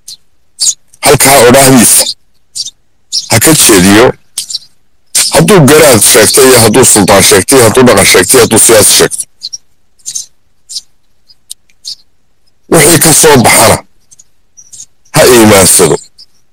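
A man speaks loudly into a microphone in short bursts with pauses.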